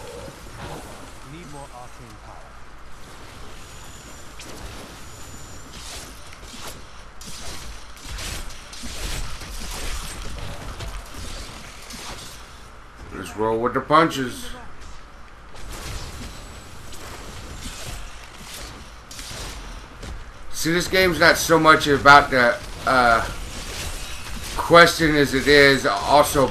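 Ice shards shatter and crash.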